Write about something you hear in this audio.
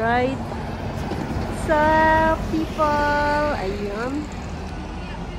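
A bus drives past close by with a whining electric motor.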